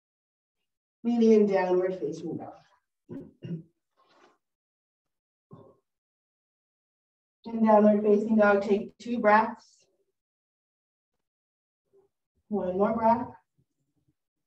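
A woman speaks calmly, giving slow instructions.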